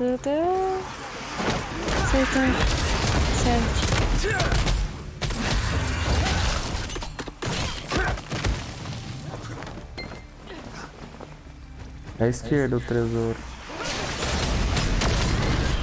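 Magic spells crackle and boom in a fight.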